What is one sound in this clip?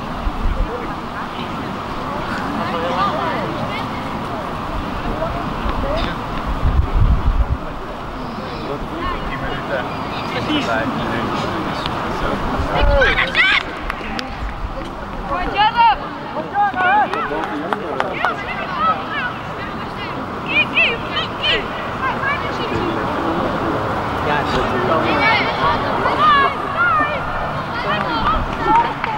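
Boys shout and call to each other outdoors.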